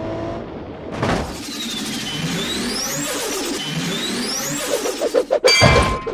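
Jet engines roar.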